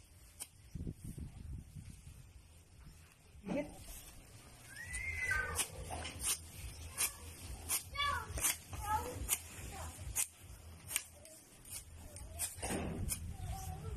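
A whip cracks sharply against the grass again and again.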